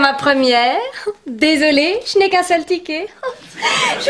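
A woman laughs and talks.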